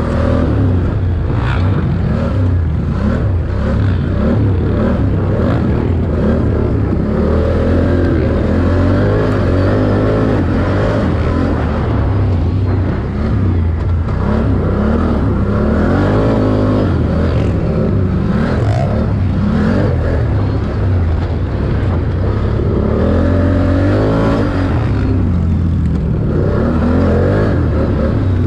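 Tyres crunch and skid over loose dirt.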